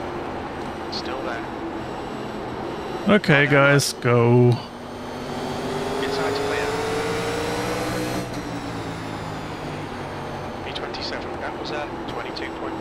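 A race car engine roars steadily, its pitch rising as it speeds up.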